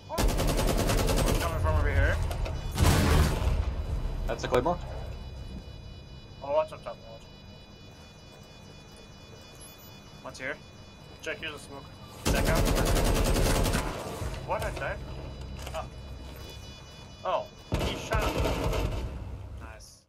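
Rapid gunfire rattles loudly in short bursts.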